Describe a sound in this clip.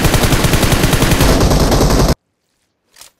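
A rifle fires rapidly in a loud burst.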